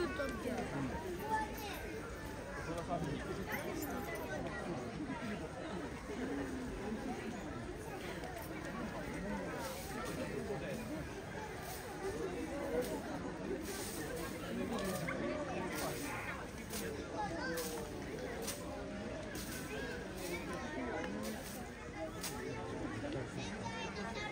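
A crowd of people chatters nearby, outdoors.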